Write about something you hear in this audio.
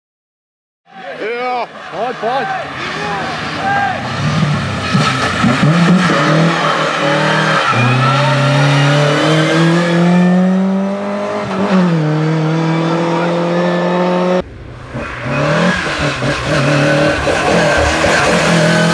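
A rally car engine roars and revs hard as the car races past.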